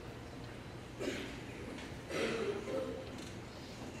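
A man speaks briefly into a microphone in a large echoing hall.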